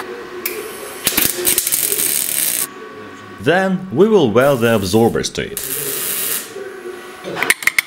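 An electric welder crackles on steel.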